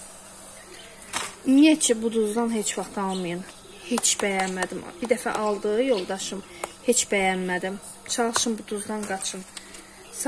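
A paper carton rustles as it is handled.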